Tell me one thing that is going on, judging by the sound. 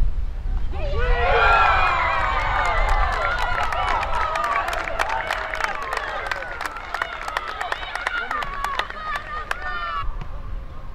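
Young women shout and cheer in celebration outdoors.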